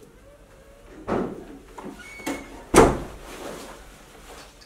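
A bag thumps as it is swung and set down.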